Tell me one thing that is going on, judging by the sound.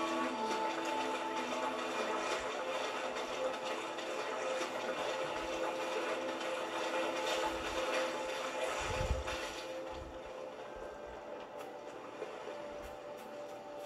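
Music from a video game plays through television speakers, slightly muffled in a room.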